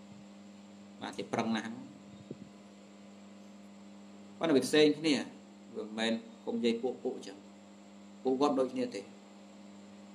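A man speaks calmly in short phrases close to the microphone.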